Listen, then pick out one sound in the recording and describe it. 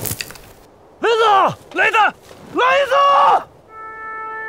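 A man cries out in strain.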